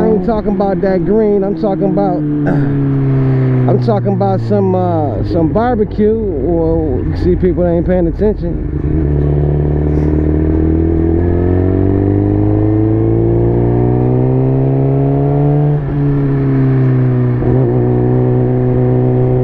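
A motorcycle engine hums steadily up close, rising in pitch as it speeds up and dropping briefly at each gear change.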